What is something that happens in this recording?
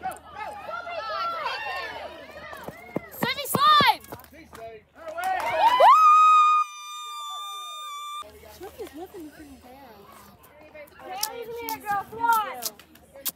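Young women shout and cheer loudly nearby.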